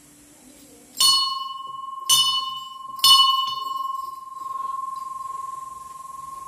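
A small metal bell is struck three times and rings on.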